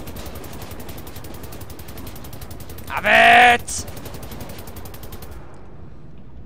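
A heavy machine gun fires in a rapid, steady burst.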